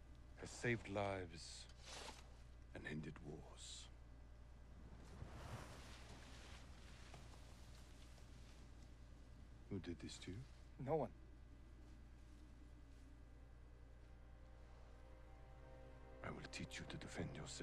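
An older man speaks calmly and gravely.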